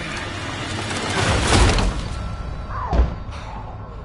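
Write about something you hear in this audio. A bookcase topples and thuds down.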